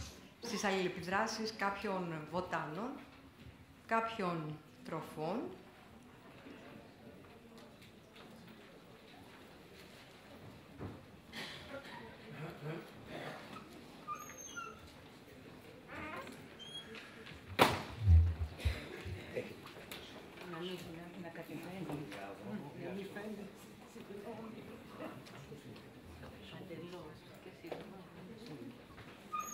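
A woman speaks calmly into a microphone in a large room, with long pauses.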